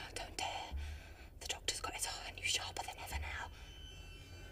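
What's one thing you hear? A young woman whispers urgently, close by.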